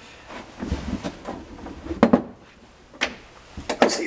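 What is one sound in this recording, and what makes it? A glass bottle knocks against a hard surface.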